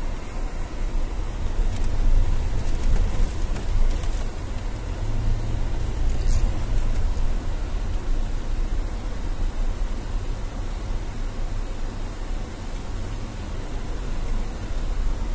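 Tyres crunch over a dirt road.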